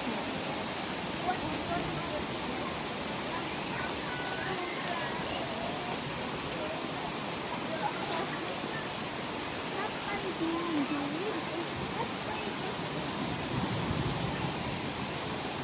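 Heavy rain pours steadily onto leaves.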